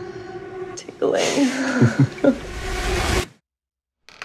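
A young woman speaks with excitement close by.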